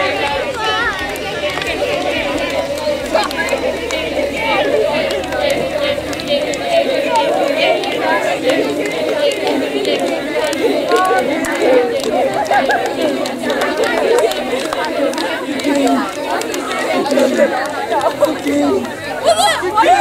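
Hands slap together in quick high fives.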